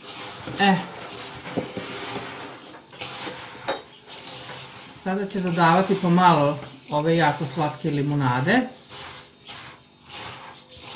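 Hands rub and crumble dry crumbs in a bowl with a soft rustling.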